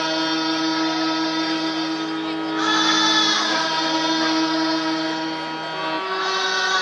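A group of young girls sings together through microphones.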